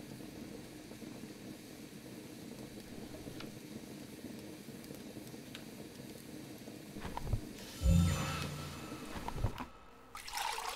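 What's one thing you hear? A fire crackles softly in a fireplace.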